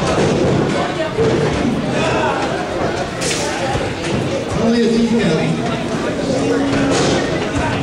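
Bodies thud onto a wrestling ring's canvas.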